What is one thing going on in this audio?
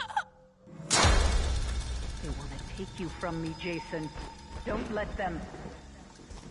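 A young woman screams in terror nearby.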